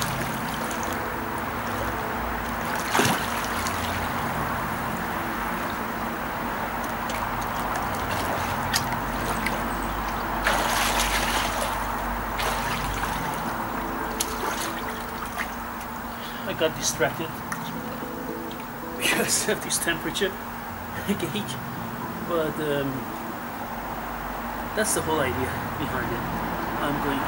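A swimmer splashes through water outdoors.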